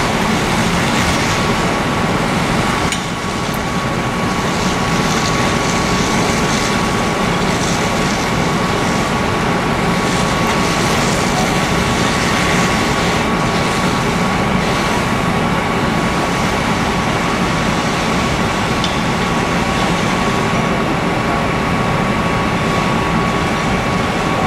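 A water jet sprays with a steady hiss.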